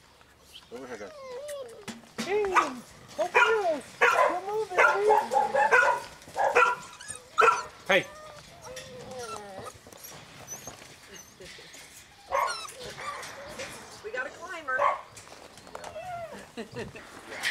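Puppies whine and yelp excitedly close by.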